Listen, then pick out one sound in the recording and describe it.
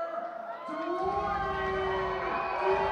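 A crowd cheers and roars in a large hall.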